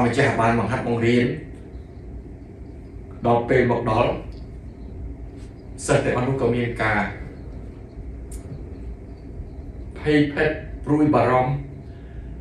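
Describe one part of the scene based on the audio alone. A middle-aged man speaks calmly and expressively into a close microphone, pausing between phrases.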